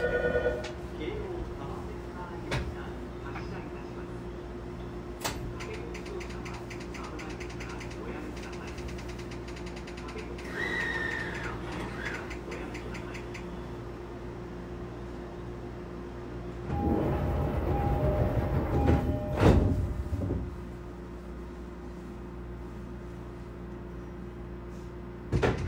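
A train's motor hums steadily as the car runs.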